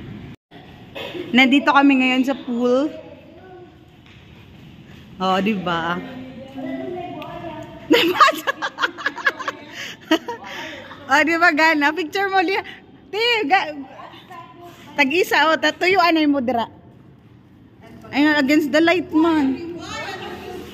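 Middle-aged women talk and laugh with animation close by.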